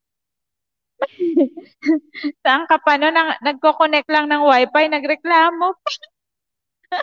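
A young woman laughs into a microphone over an online call.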